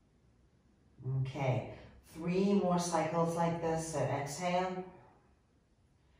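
A woman speaks calmly and clearly, close by.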